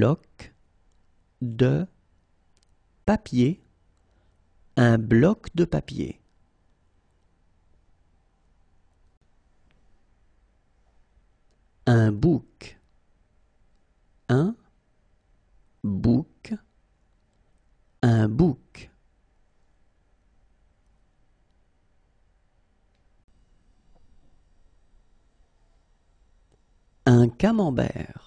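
A man speaks clearly and slowly through a microphone, saying single words with pauses between them.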